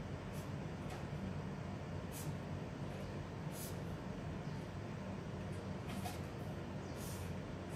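A marker squeaks in short strokes on paper.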